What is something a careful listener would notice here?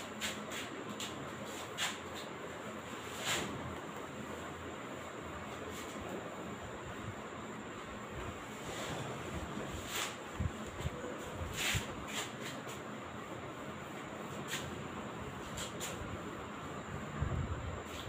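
A duster rubs and squeaks across a whiteboard.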